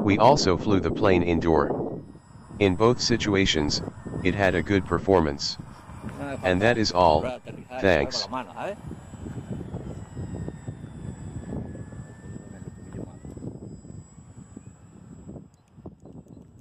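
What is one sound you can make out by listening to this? A model airplane's electric motor whines faintly overhead.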